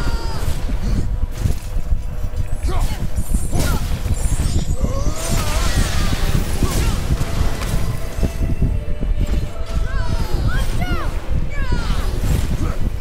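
Heavy blows thud and clang in a fight.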